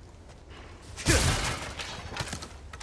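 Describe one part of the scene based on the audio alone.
A wooden barrel smashes apart with a loud crack.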